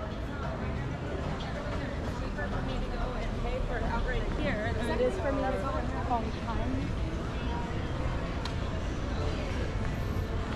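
Footsteps tap on a paved street.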